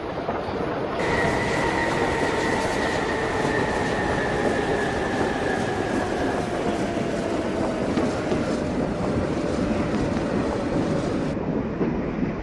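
A train's electric motor whines with a falling pitch.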